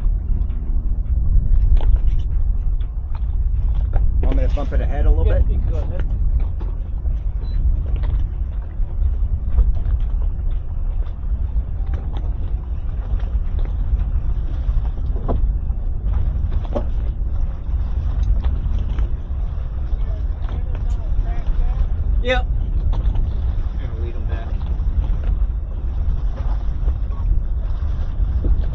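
Water slaps and splashes against a boat's hull.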